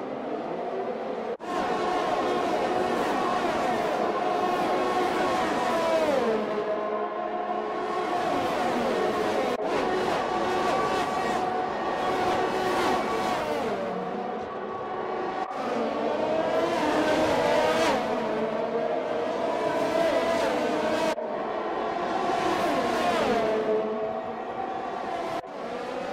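Racing car engines scream at high revs, rising and dropping in pitch as they shift gears.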